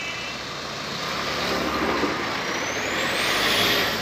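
A car engine hums as it passes.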